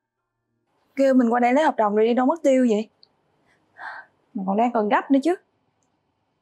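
A young woman speaks close by, tense and upset.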